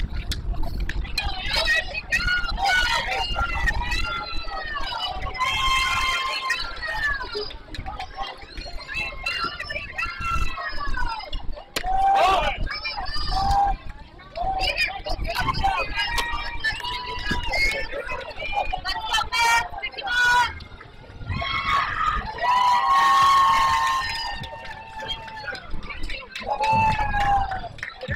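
Young players shout and cheer across an open field.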